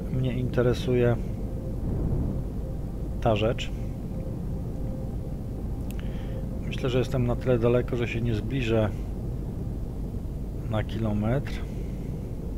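A man speaks into a headset microphone in short bursts, calmly.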